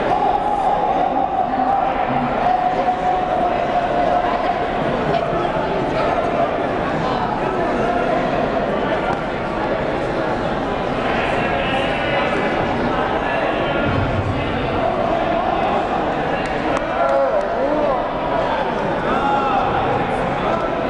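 Several men shout encouragement from close by.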